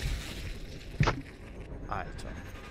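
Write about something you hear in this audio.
A bullet strikes a head with a wet crack.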